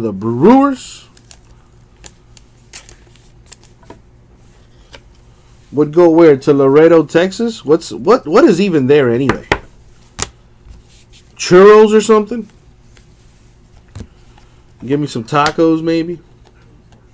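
Trading cards rustle and slide against plastic as hands handle them.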